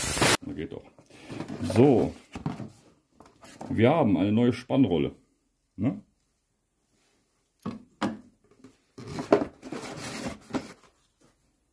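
A cardboard box rustles as it is opened and handled.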